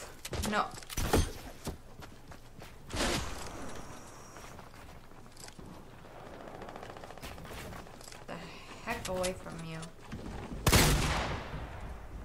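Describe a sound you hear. Gunshots ring out from a video game.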